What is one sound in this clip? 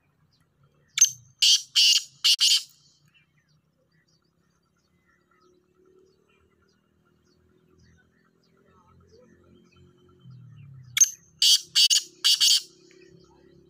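A rooster crows loudly close by in short bursts.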